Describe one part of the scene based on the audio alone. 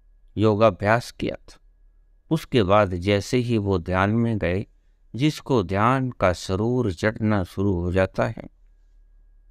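An elderly man speaks calmly close to the microphone.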